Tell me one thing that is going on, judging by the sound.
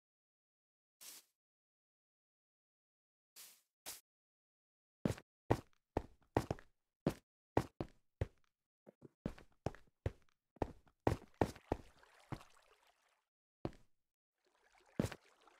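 Footsteps thud on stone and wood in a short, quick series.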